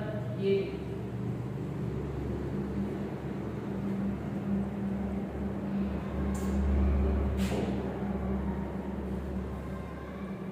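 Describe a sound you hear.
A pen squeaks and taps on a board.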